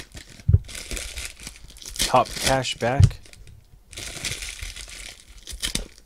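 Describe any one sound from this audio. Foil wrappers crinkle and rustle as packs are torn open.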